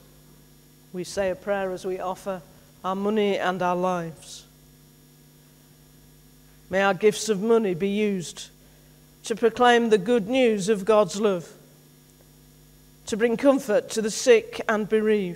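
A man speaks calmly through a microphone in a large echoing hall, pausing between phrases.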